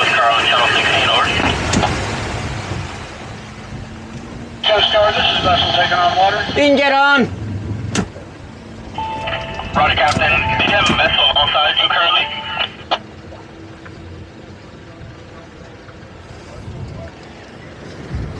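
Water churns and splashes in a boat's wake.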